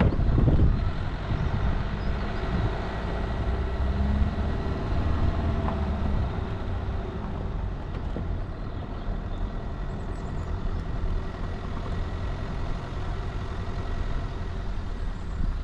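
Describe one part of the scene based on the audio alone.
A vehicle engine rumbles steadily as it drives along.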